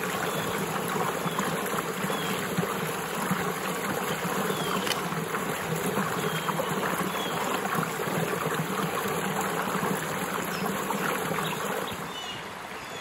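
Water pours from a pipe and splashes into a stream close by.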